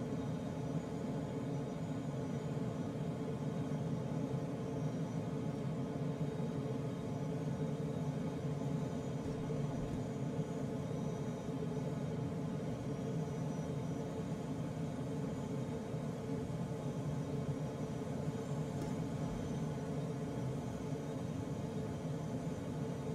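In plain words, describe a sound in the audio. Wind rushes steadily past a gliding aircraft.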